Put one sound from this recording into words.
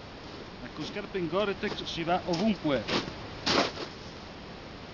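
Footsteps crunch on snow close by.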